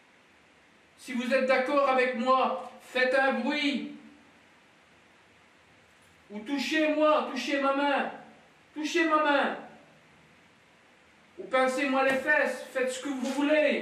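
A man speaks loudly and with animation in an echoing room.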